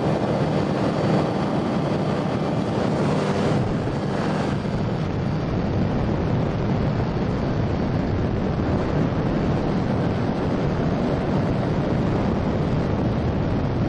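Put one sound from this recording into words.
A light aircraft engine drones steadily close by.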